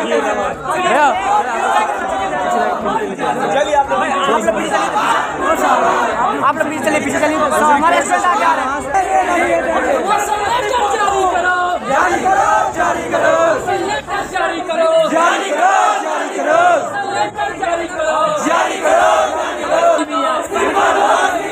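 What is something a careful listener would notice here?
A crowd of young men chants and shouts loudly outdoors.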